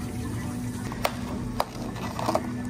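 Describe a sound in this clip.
Plastic lids snap onto cups with sharp clicks.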